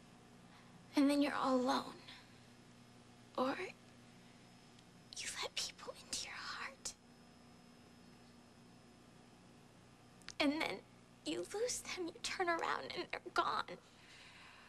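A young woman speaks close by in a shaky, tearful voice.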